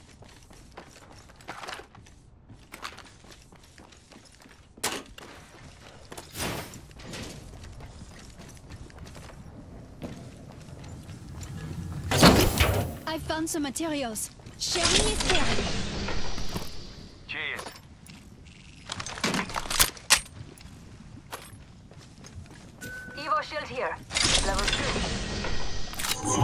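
Footsteps clatter on a metal floor.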